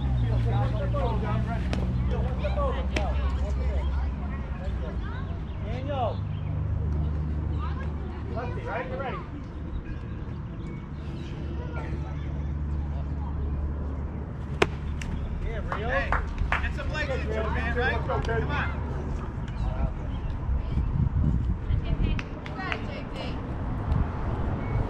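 Children and adults call out and cheer nearby outdoors.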